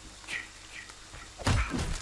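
An axe strikes a wooden door with a heavy thud.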